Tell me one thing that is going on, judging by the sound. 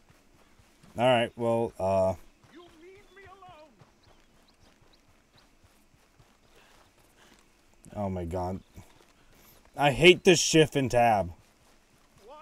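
A young man talks loudly and with animation into a close microphone.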